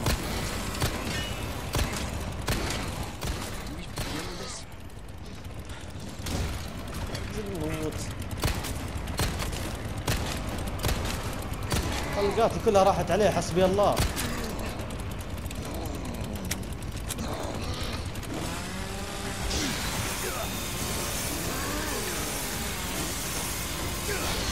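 A chainsaw engine buzzes and revs.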